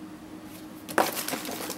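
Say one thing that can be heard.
A hand rustles through plastic packaging.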